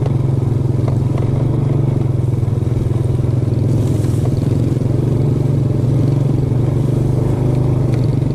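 Tall grass brushes against a moving scooter.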